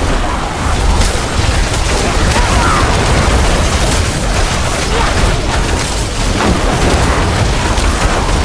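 Magic spells crackle and burst in rapid bursts.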